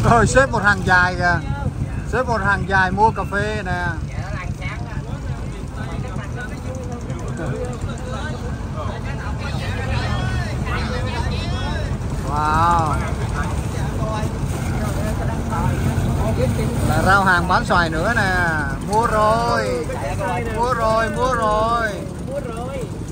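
A boat engine rumbles steadily while moving over water.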